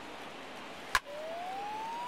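A baseball bat cracks against a ball.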